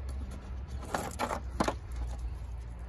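Stones knock and clack against each other.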